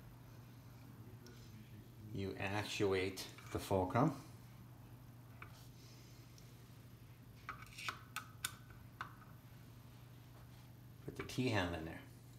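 A metal fitting clicks and scrapes as a hand turns it.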